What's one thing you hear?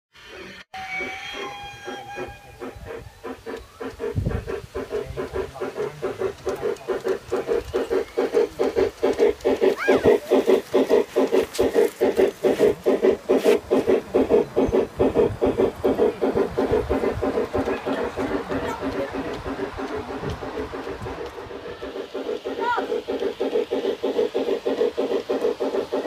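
A small steam engine chuffs in a fast, steady rhythm.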